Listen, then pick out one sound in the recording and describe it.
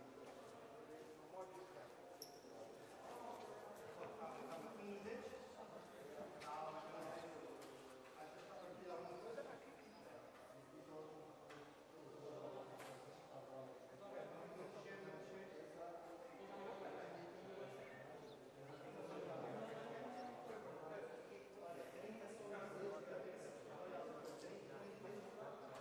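Players shout and call out to each other in a large echoing hall.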